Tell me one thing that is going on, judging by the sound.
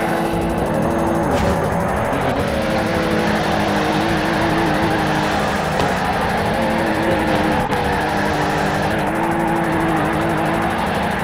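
Tyres screech loudly as a car drifts.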